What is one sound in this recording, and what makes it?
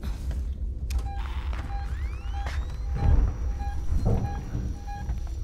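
A motion tracker beeps in a steady, repeating rhythm.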